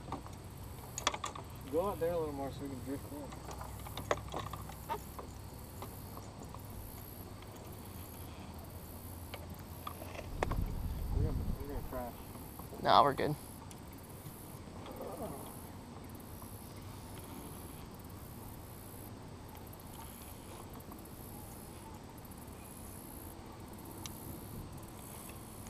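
A fishing reel whirs as its handle is cranked.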